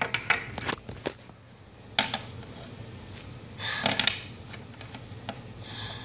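Small plastic toy figures knock and click against a hard surface.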